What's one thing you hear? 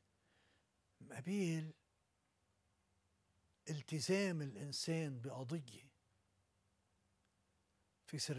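An elderly man speaks calmly and slowly, close to the microphone.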